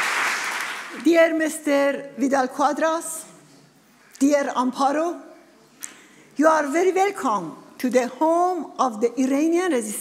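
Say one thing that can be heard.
A middle-aged woman speaks calmly into microphones.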